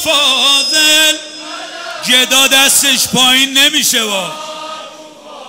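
A man chants loudly and passionately into a microphone, heard through loudspeakers in a large echoing hall.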